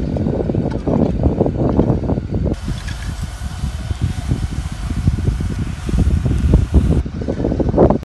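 A rake scrapes over dry ground.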